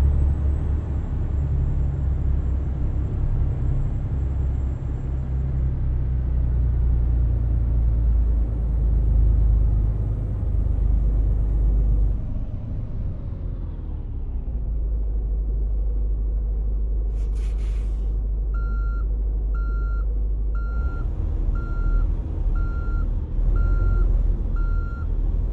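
A truck engine rumbles, slows down and settles into a low idle.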